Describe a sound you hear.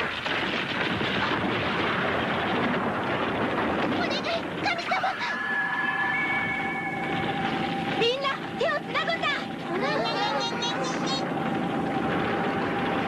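Rocks crash and rumble in a loud, steady roar.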